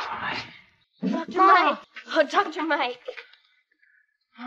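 A boy calls out in a clear voice.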